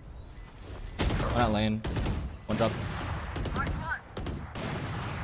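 Rapid gunfire cracks from a game.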